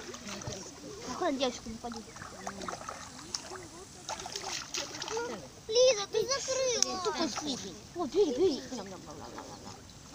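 Many ducks quack and chatter close by.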